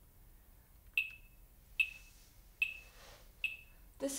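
A piano plays a high note, struck several times.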